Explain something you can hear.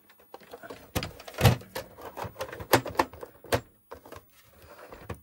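A plastic game cartridge clicks and knocks as it is pushed into a console slot.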